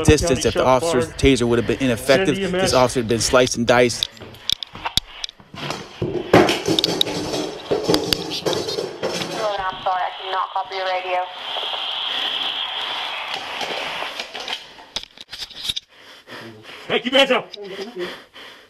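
A man speaks urgently and breathlessly, close up.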